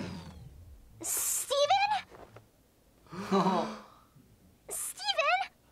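A young man exclaims in surprise close by.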